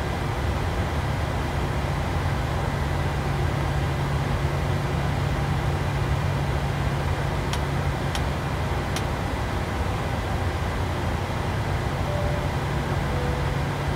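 Jet engines hum steadily at idle.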